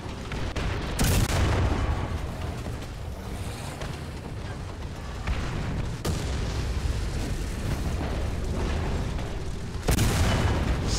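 A tank cannon fires with loud booming blasts.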